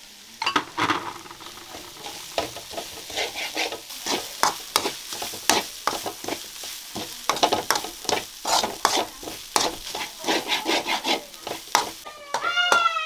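A metal spatula scrapes and clatters in a wok.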